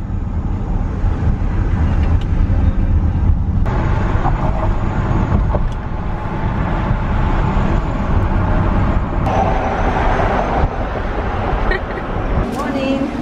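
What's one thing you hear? Wind rushes loudly past an open car window.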